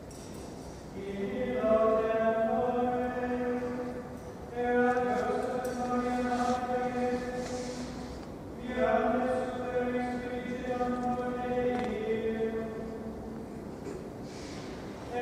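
A man chants slowly in long held notes, echoing in a large hall.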